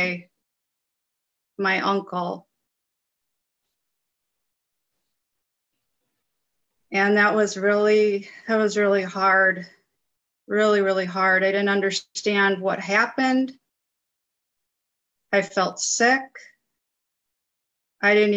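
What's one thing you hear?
A middle-aged woman speaks calmly in pauses over an online call.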